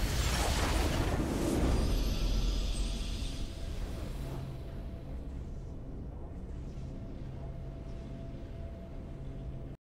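A bright game victory fanfare swells and then settles into a low drone.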